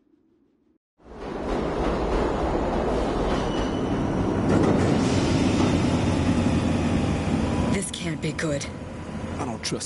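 A subway train rumbles loudly through a tunnel.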